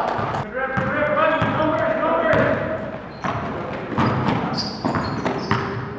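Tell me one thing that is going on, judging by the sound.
A basketball bounces on a hard court floor.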